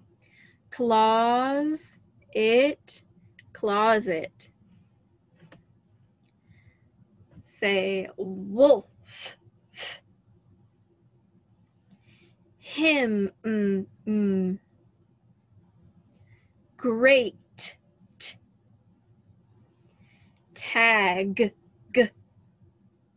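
A young woman speaks in short, animated bursts close to a microphone, with pauses between them.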